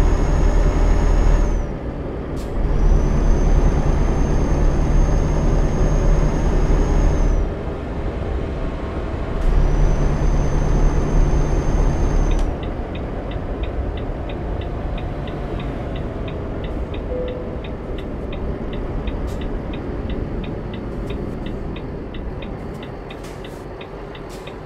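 A truck engine drones steadily while driving.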